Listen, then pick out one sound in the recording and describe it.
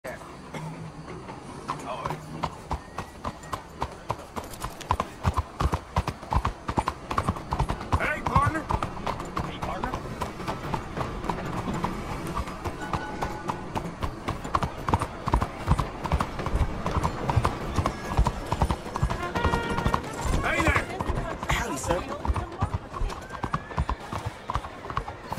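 Horse hooves clop steadily on cobblestones.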